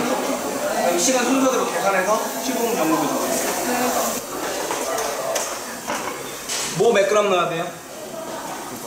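Several adults talk with animation close by.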